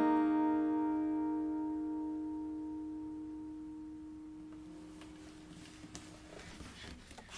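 A final acoustic guitar chord rings out and slowly fades.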